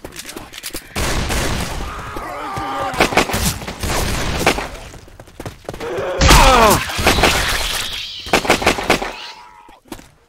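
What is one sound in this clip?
A rifle fires rapid bursts of shots that echo.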